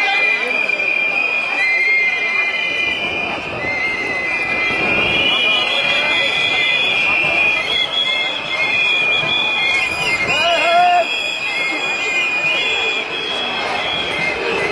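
Many footsteps shuffle along a paved street.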